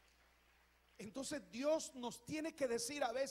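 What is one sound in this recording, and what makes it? An elderly man speaks loudly and with animation into a microphone in an echoing hall.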